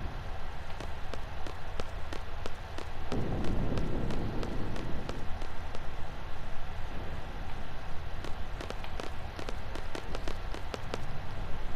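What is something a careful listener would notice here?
Footsteps tap steadily on stone steps.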